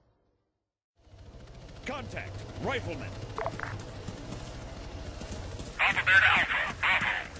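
Helicopter rotors thump overhead.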